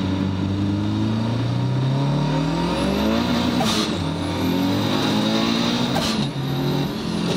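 A car engine revs up hard through the gears, its pitch climbing, dropping briefly at each shift, then climbing again.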